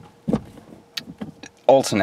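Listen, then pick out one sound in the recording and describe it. A gear lever clunks into place.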